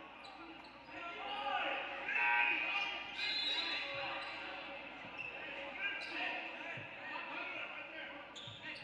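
Spectators cheer and shout in an echoing hall.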